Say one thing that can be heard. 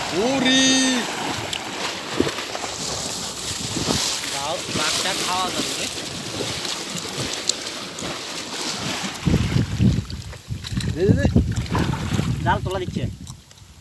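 Water splashes and churns.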